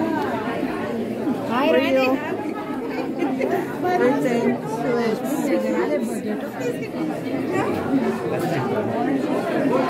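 A woman talks close by.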